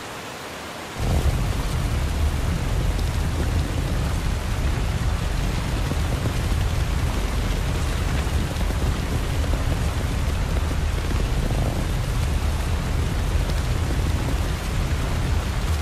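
A heavy stone block grinds and rumbles as it is dragged across a stone floor.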